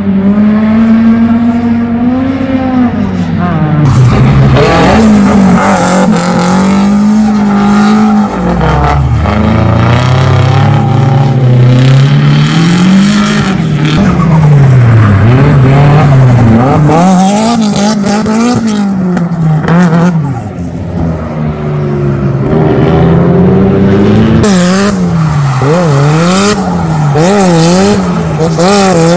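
Car engines rev hard and roar, rising and falling quickly.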